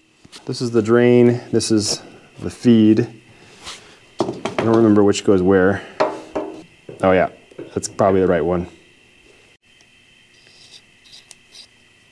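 Metal fittings click and clink as they are screwed in.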